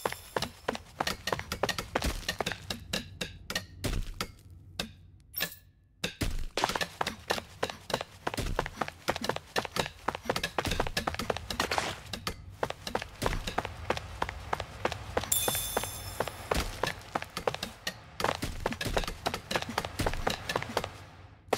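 Quick footsteps run across a stone floor.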